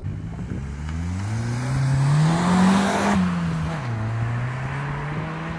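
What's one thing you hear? Tyres hum on asphalt as a car passes.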